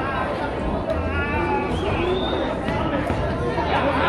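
Bodies thud onto a wrestling ring's mat.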